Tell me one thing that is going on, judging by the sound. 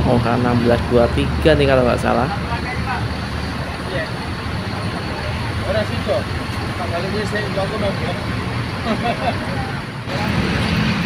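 A bus engine rumbles as the bus pulls away.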